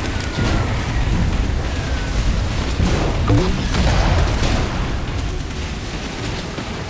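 Water splashes and sprays around a speeding boat.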